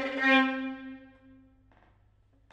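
A violin holds a long, steady note and fades.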